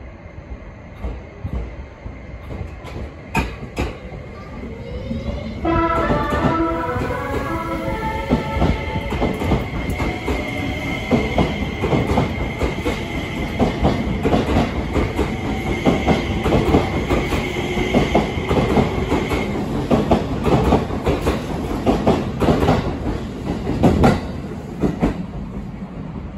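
A train rolls past close by, its wheels clacking rhythmically over the rail joints.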